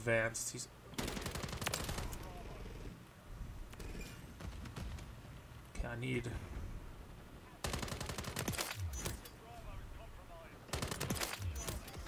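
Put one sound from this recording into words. Rapid gunfire bursts in loud, fast volleys.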